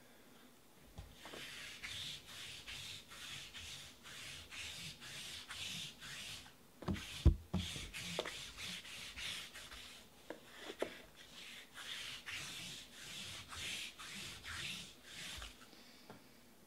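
A sticky lint roller crackles in quick, rhythmic strokes as it rolls back and forth.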